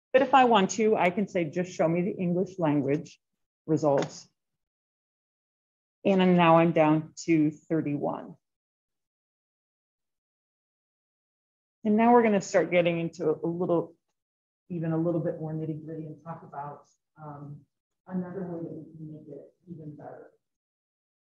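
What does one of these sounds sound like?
A woman talks calmly through a microphone, explaining.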